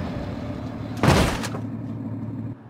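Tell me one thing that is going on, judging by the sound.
A vehicle crashes with a loud metallic crunch.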